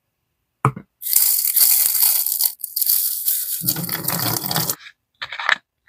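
Liquid and powder slosh and rattle inside a plastic bottle being shaken.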